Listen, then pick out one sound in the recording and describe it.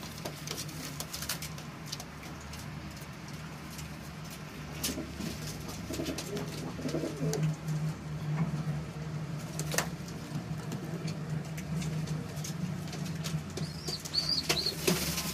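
A pigeon coos with low, throaty, pulsing calls nearby.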